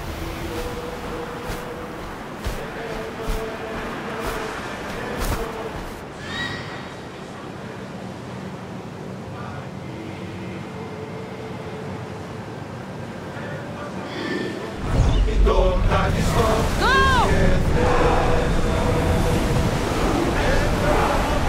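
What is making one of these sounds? Waves wash and splash on open sea.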